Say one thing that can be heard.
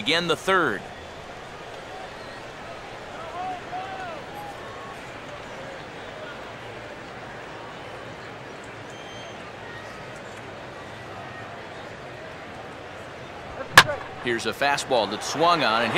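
A crowd murmurs steadily in a large stadium.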